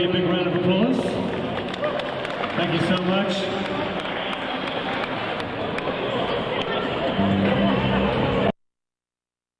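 A crowd of adults chatters nearby.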